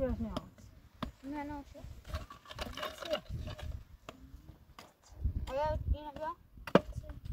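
Concrete blocks knock and scrape against each other.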